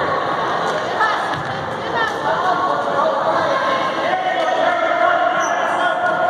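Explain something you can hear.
Basketball players' sneakers squeak on a hardwood court.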